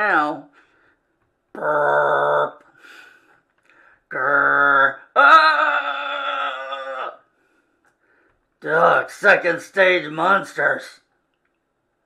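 An older man speaks animatedly into a microphone, making growling sound effects.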